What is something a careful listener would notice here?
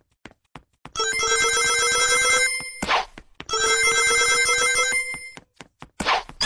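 Bright, bouncy electronic game music plays loudly.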